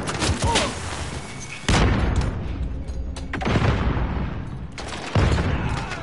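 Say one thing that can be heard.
A rifle fires in loud bursts.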